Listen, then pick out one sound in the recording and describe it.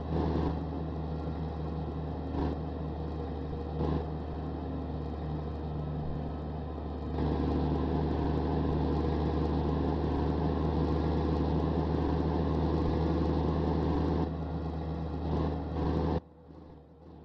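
A truck's diesel engine hums steadily from inside the cab.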